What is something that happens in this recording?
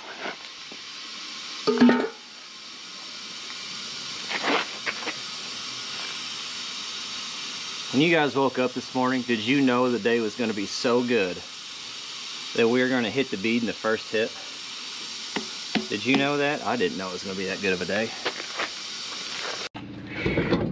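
Air hisses steadily from a hose into a tyre.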